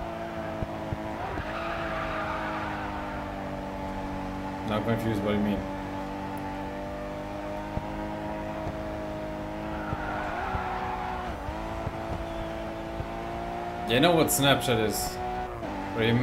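A racing car engine roars steadily at high speed, dropping in pitch with gear shifts.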